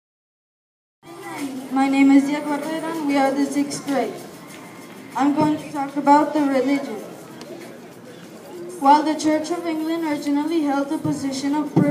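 A group of children sing together through loudspeakers.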